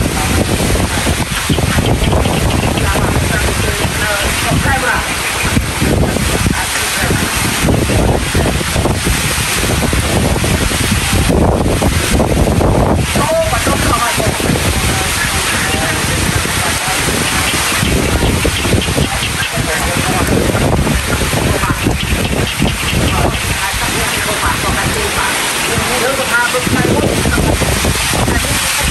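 Rain drums on a metal roof close by.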